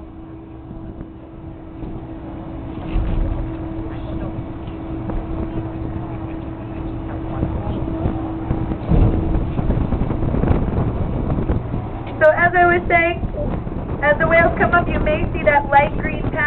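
Wind blows hard across open water.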